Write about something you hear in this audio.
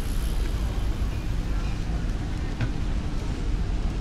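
Bicycles roll past over cobblestones.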